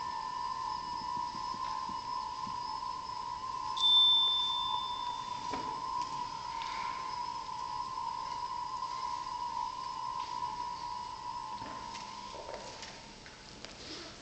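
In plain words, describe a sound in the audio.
A wind band holds a long final chord that slowly fades away in a large hall.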